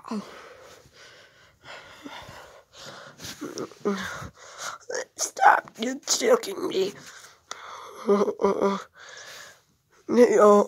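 Fabric rustles and brushes close by.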